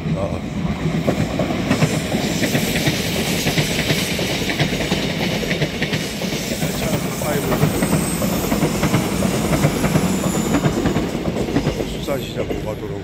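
An electric train rumbles past close by on the tracks.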